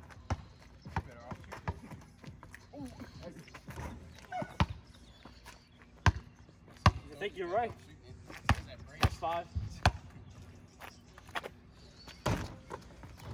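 A basketball bounces on pavement outdoors.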